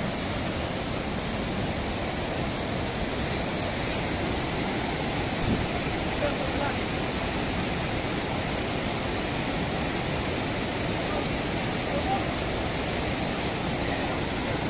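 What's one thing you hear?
A fast mountain river rushes and roars loudly close by.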